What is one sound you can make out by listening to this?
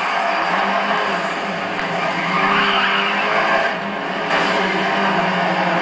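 A racing car engine roars steadily.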